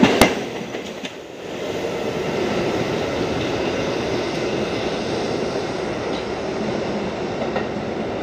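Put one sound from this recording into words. A subway train rolls away into the distance and fades.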